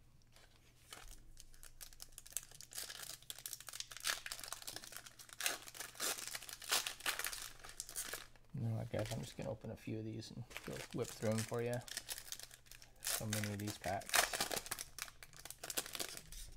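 Foil card wrappers crinkle and tear.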